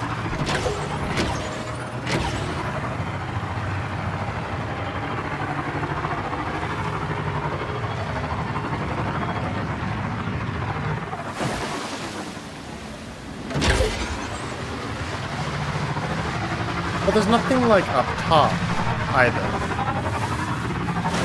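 A motorbike engine hums steadily as it rides along.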